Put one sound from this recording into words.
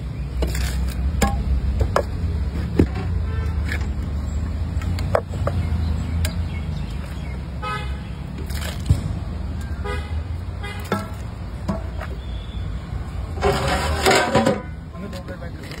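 A metal bowl clanks against the rim of a steel pot.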